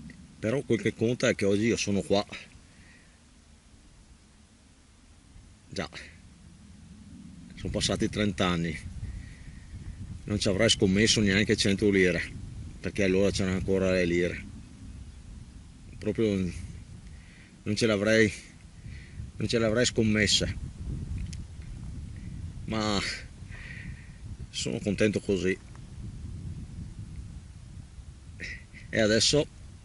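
A middle-aged man talks casually close to the microphone, in short bursts with pauses.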